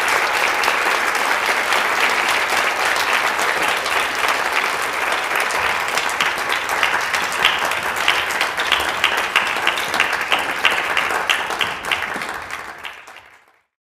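A marimba is played with mallets in a large echoing hall.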